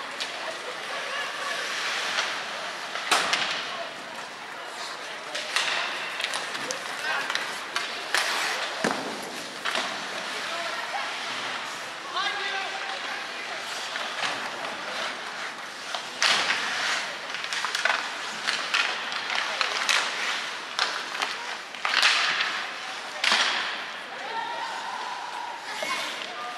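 Ice skates scrape and carve across the ice in a large echoing arena.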